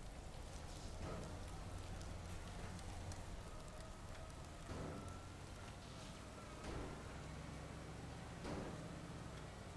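Concrete and debris crash and thud as a building breaks apart.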